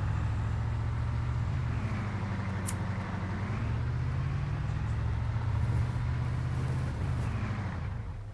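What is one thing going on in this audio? A vehicle engine rumbles steadily as it drives.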